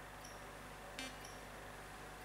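An electronic blip sounds as a menu cursor moves.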